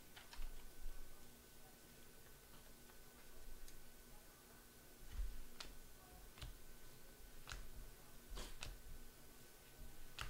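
Cards rustle and flick as hands shuffle through them close by.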